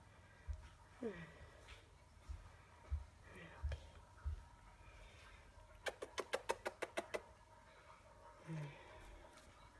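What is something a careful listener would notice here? A cat meows softly a few times.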